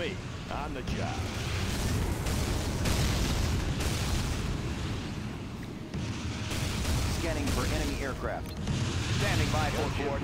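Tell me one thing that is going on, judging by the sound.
Explosions boom repeatedly in a battle.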